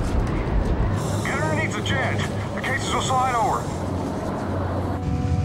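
A man in a breathing mask speaks urgently through the mask.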